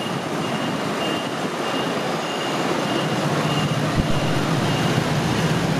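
Motor scooters ride past, engines humming.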